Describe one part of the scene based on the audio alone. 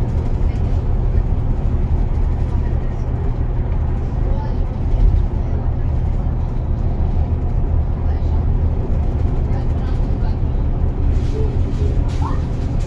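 Tyres roar on the road surface.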